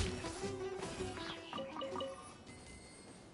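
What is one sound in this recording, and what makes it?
Magical attacks crackle and chime in quick bursts.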